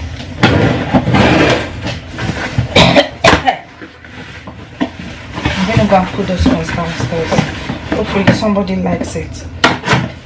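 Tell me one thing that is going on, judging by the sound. Dishes clatter in a sink.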